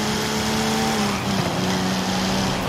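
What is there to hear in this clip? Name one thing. A sports car engine briefly dips in pitch during a gear change.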